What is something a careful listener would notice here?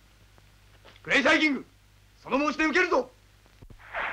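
A young man shouts in alarm.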